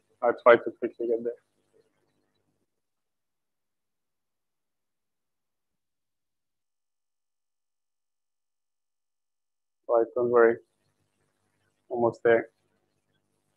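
A man speaks through a microphone in short bursts.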